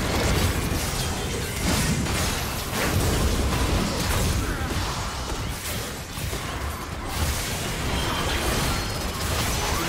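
Magic blasts and spell effects crackle and burst in a fast video game battle.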